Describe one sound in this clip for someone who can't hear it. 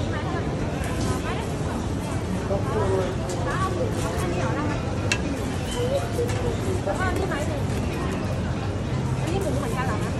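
People chatter nearby in a busy, noisy crowd.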